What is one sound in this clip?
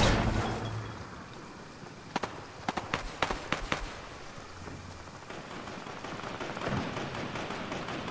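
Quick footsteps patter on hard stone.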